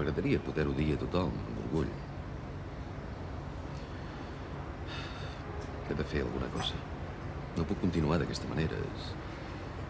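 An older man speaks calmly and close to the microphone, with pauses.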